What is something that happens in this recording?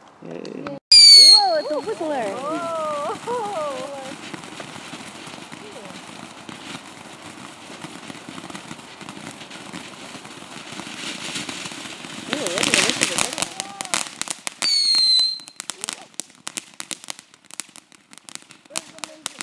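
A second firework fountain roars and hisses loudly.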